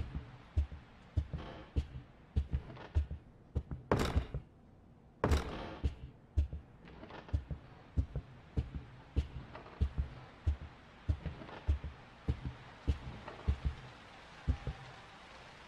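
Footsteps thud slowly and steadily on a wooden floor.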